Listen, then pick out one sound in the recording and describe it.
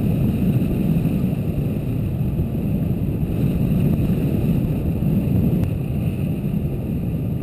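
Wind rushes and buffets loudly past a hang glider in flight.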